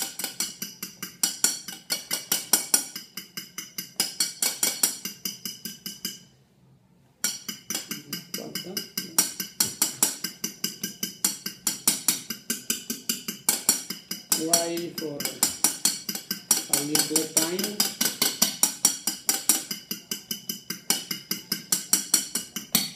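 A whisk beats rapidly against a bowl.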